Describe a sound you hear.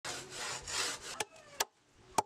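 A hand saw rasps back and forth through wood.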